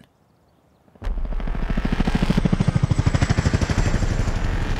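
A helicopter flies low overhead with loud thumping rotor blades.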